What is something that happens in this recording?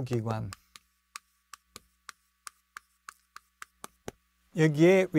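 Chalk taps and scrapes on a board in quick short strokes.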